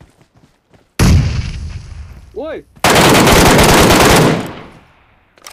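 Rapid gunshots ring out loudly.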